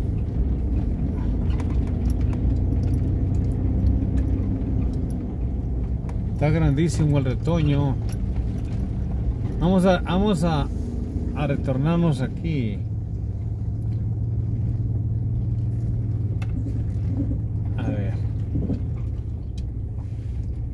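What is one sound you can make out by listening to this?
A car engine hums low and steady as the car drives slowly along a road.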